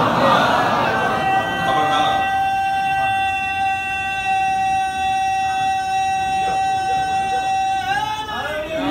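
A man holds a long, steady sung note through a microphone.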